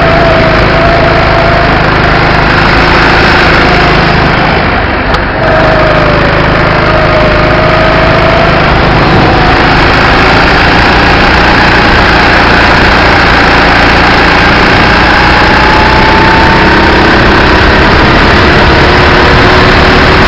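A go-kart engine whines loudly and steadily, rising and falling in pitch as the kart speeds around bends.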